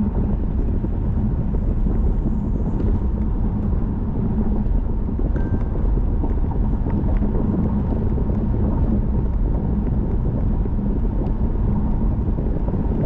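Tyres roll on pavement with a low steady rumble.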